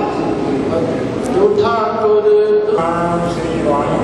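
An elderly man chants a prayer through a microphone.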